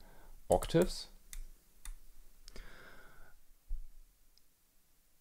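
Small knobs click and scrape as they are turned by hand.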